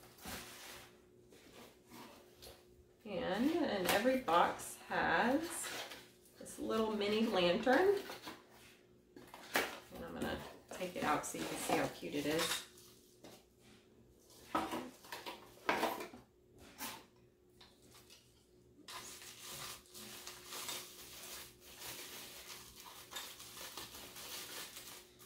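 Cardboard and paper packaging rustle and crinkle as they are handled.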